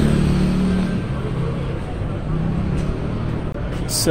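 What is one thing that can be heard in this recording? A motor scooter rides past on the street.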